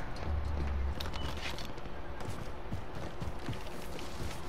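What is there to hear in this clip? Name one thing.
A rifle clacks as it is handled.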